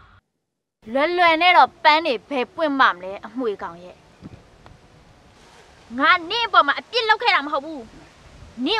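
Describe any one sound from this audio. A young woman talks back sharply, close by.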